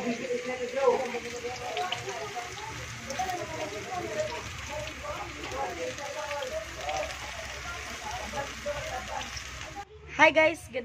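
Oil sizzles and crackles as food fries in a pan.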